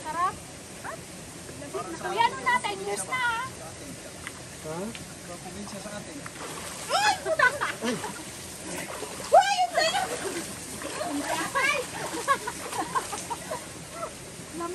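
Young women talk and squeal excitedly close by.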